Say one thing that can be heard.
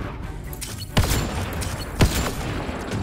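A sniper rifle fires loud, sharp shots with a booming echo.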